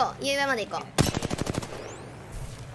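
Rapid gunfire rattles in a quick burst.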